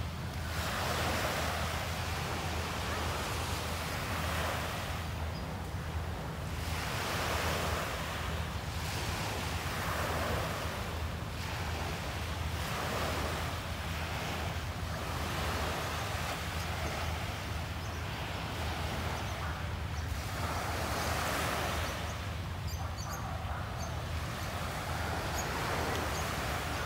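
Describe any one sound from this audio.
Small waves wash onto a sandy shore and draw back in a steady rhythm.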